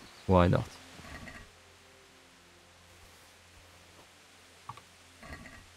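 A young man speaks quietly into a close microphone.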